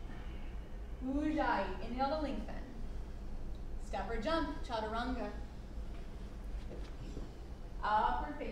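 A young woman gives instructions calmly in a room with a slight echo.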